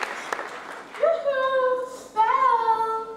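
A woman sings in long, held notes.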